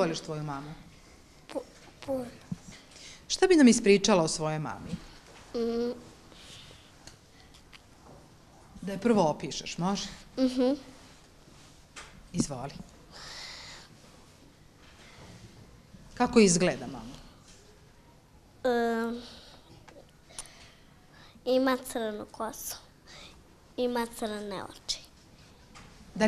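A young girl talks close by, in short cheerful bursts.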